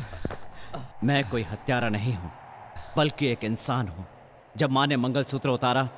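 A man speaks firmly and clearly nearby.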